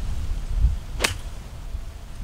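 A golf club sharply strikes a ball.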